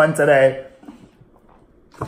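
A man gulps water from a plastic bottle.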